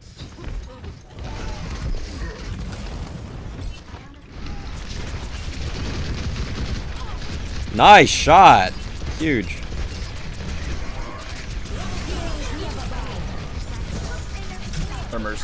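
Rapid gunfire and blasts sound from a video game.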